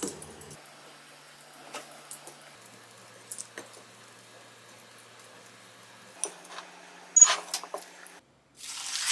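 Metal tongs clink and scrape against a glass bowl.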